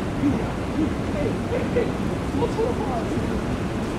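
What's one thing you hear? Tyres briefly squeal on the runway as the airliner touches down.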